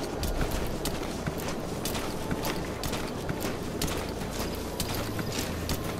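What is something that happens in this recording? Clothing and gear rustle as a soldier crawls through grass.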